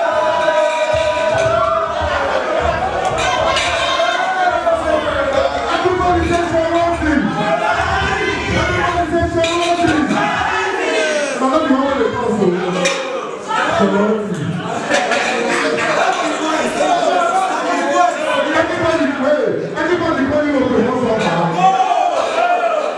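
Music with a heavy beat plays loudly over loudspeakers.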